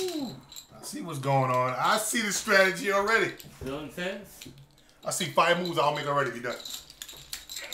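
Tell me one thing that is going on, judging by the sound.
A man talks and laughs close by.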